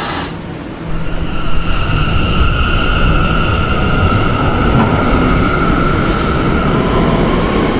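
A train's electric motors whine and rise in pitch as the train picks up speed.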